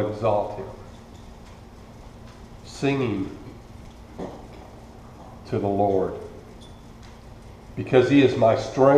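An older man speaks slowly and calmly into a microphone, with pauses.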